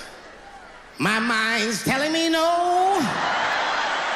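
A man speaks loudly and animatedly into a microphone.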